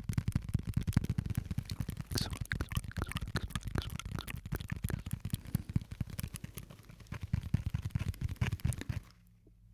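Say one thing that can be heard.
Fingers rub and tap against a small object close to a microphone, making quick crackling and tapping sounds.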